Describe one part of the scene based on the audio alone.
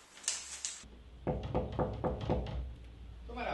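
A man knocks on a wooden door.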